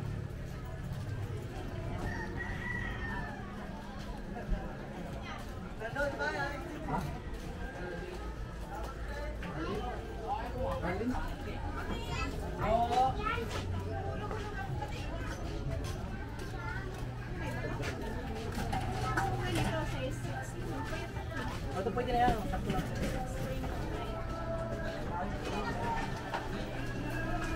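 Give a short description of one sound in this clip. Men and women talk at a distance, with voices overlapping.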